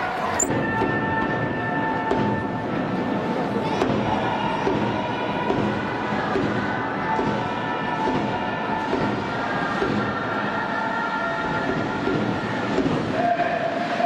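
Many fans clap along in a steady rhythm.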